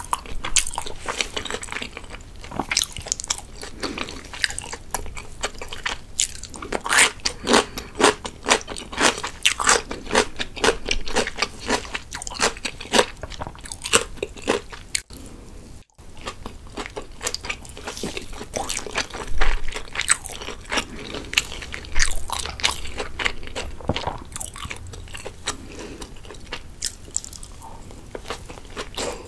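A young woman chews food wetly and loudly close to a microphone.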